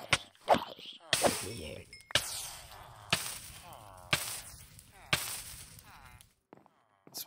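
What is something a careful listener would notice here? A sword strikes a creature with sharp, repeated hits.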